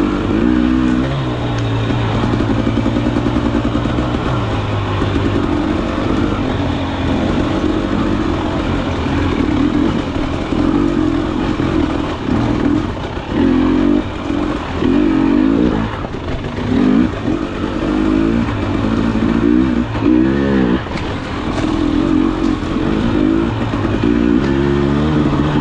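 A dirt bike engine revs up and down close by, rising and falling with the throttle.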